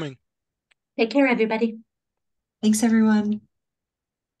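An older woman speaks over an online call.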